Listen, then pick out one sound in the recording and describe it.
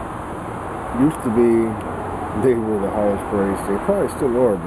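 A man speaks close by with animation.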